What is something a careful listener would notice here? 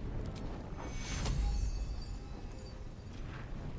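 A magic spell bursts with a bright whoosh.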